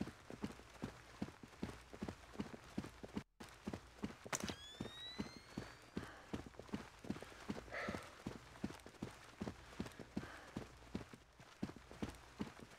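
Quick footsteps run steadily across a hard floor.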